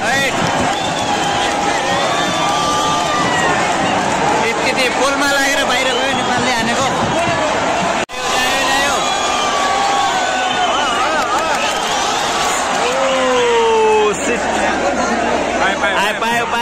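A large crowd cheers and roars across an open stadium.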